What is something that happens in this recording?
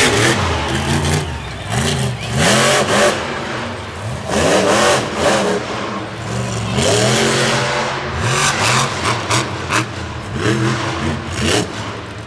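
A crowd cheers in a large stadium.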